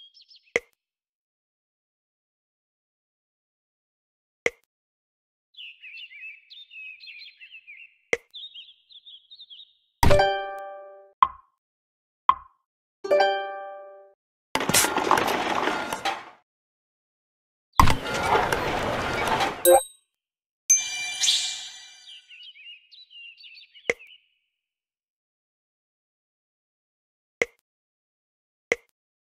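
Soft clicks tap now and then.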